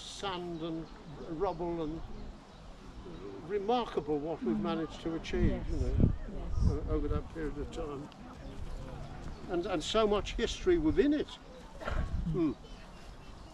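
An elderly man speaks calmly outdoors.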